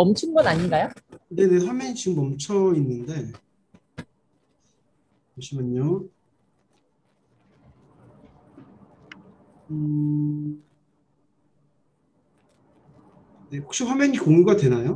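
A middle-aged woman speaks calmly over an online call, with pauses.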